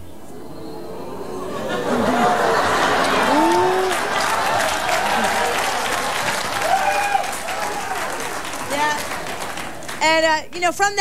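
A studio audience applauds and cheers loudly.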